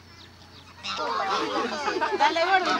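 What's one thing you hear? Children and adults chatter nearby.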